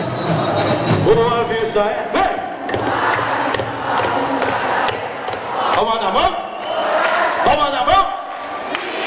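A crowd cheers and chatters loudly all around.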